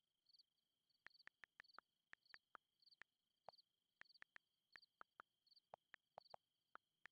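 Keyboard keys click quickly in bursts.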